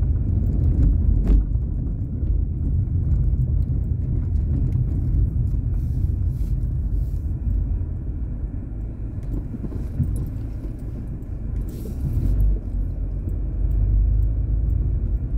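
Tyres roll slowly over a rough road.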